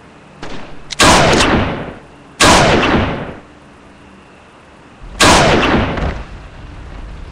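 Loud gunshots from a phone game boom and echo away.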